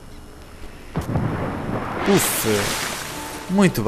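Water splashes loudly as a body dives in.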